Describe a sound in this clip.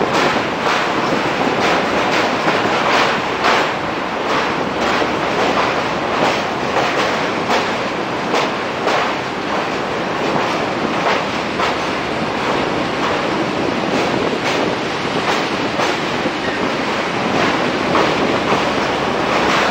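A train rumbles steadily across a metal bridge.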